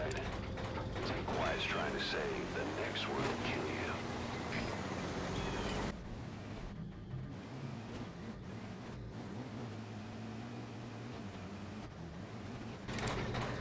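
A heavy tank engine rumbles as the tank drives over rough ground.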